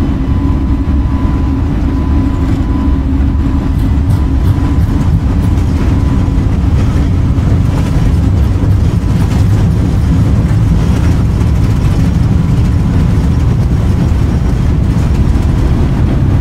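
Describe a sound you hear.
Rain patters on an airliner's windscreen.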